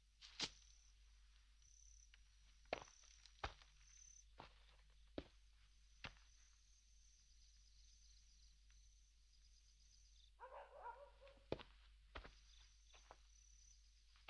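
Slow footsteps crunch on gravel outdoors.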